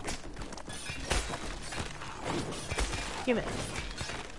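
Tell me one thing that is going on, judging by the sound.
Weapons strike with sharp thuds and cracks.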